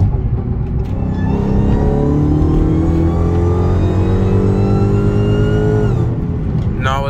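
A car engine revs hard, rising in pitch, then cuts off sharply.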